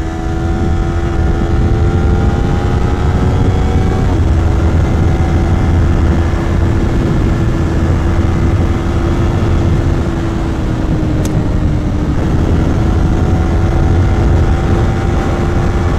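A motorcycle engine hums steadily at cruising speed, with the pitch dipping briefly at gear changes.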